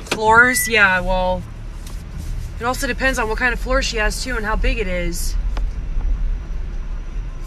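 A car engine hums low.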